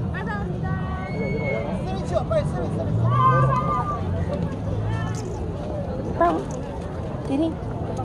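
A crowd chatters outdoors in a busy street.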